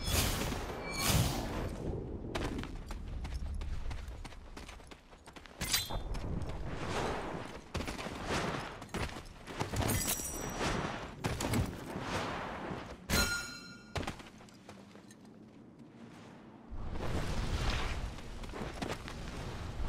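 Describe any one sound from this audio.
Footsteps run quickly over grass and stone.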